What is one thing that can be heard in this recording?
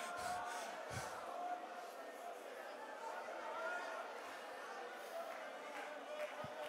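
A crowd cheers and calls out.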